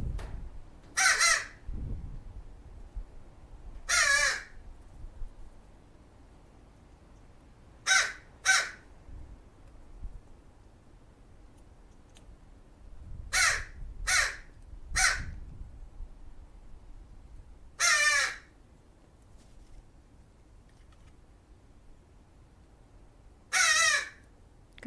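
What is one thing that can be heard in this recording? A crow caws loudly nearby, in short harsh calls.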